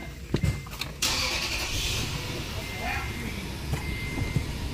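A truck engine starts and idles steadily.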